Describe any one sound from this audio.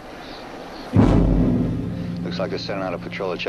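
A tank cannon fires with a loud, echoing boom.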